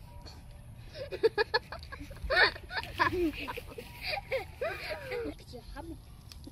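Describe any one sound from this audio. Young girls laugh and giggle close by.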